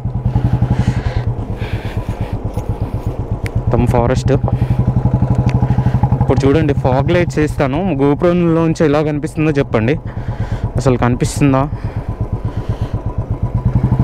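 A motorcycle engine thumps steadily at low revs while riding.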